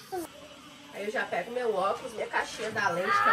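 A young child babbles and chatters up close.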